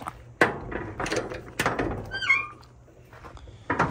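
A metal door creaks and clanks open.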